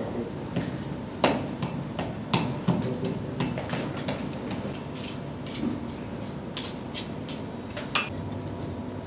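A pestle knocks against a stone mortar.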